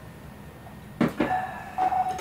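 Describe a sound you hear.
A cup knocks down onto a table.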